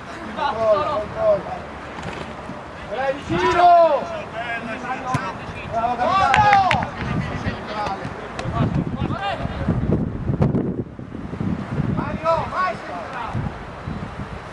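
Young players shout to each other outdoors.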